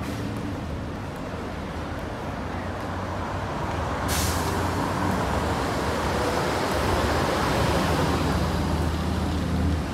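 Traffic hums along a city street outdoors.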